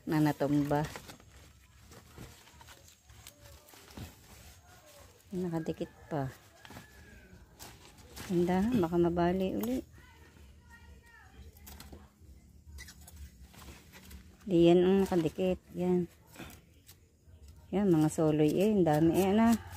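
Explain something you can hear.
Dry leaves and roots rustle softly as hands pull at them.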